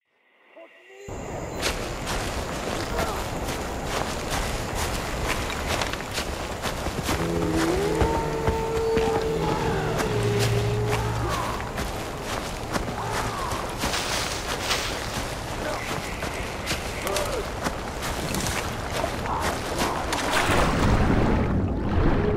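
Footsteps rustle through tall grass.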